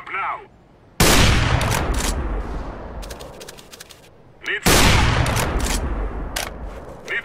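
A sniper rifle fires a loud, booming shot that echoes away.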